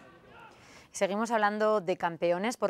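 A young woman speaks clearly into a microphone, reading out news.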